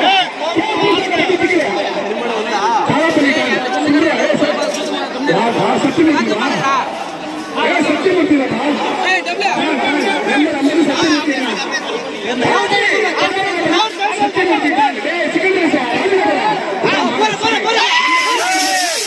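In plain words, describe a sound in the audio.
Several men talk and shout excitedly close by.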